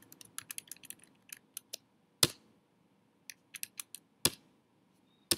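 Keys click on a keyboard in quick bursts.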